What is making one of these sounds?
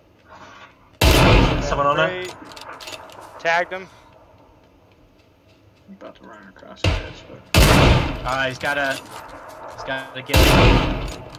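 Rifle shots boom loudly.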